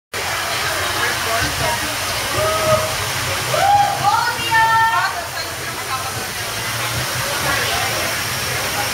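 An audience murmurs and chatters in the background.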